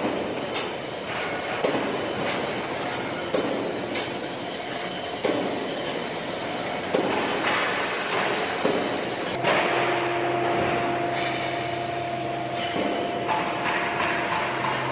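A roll forming machine runs with a steady metallic whir and hum.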